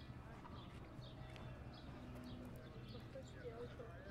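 People walk past close by, their footsteps tapping on the pavement.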